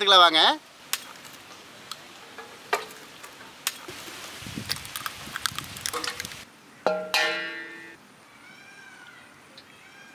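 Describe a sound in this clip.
Eggs crack against a metal blade.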